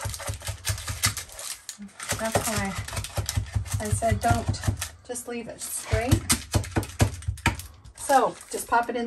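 A wooden pestle thumps and presses granola into a metal pan.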